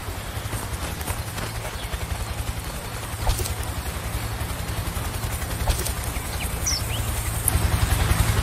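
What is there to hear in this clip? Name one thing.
Grass rustles steadily as someone crawls through it.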